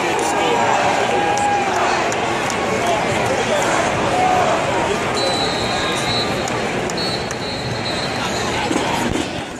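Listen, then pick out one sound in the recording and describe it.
A large stadium crowd murmurs and chatters all around.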